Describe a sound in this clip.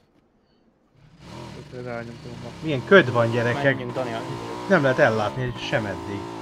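A motorbike engine roars while riding at speed.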